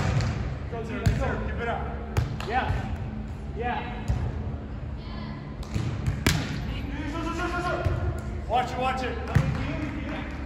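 A volleyball thuds off players' hands and forearms.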